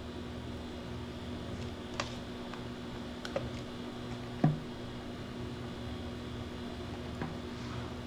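A thick drink pours from a blender jug into a cup.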